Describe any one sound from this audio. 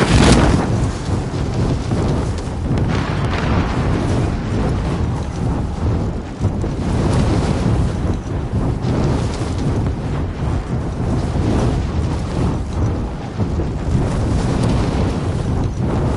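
Wind roars and rushes steadily past a falling body.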